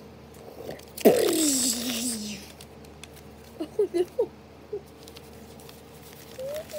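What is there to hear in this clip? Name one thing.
Paper rustles as it is picked up and moved.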